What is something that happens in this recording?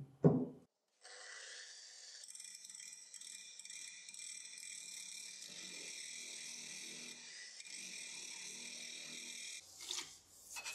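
An angle grinder whirs steadily against metal.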